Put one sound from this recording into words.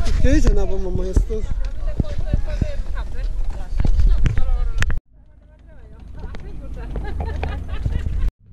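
Several adults talk nearby outdoors.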